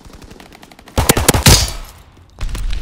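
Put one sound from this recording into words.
A pistol fires loud shots.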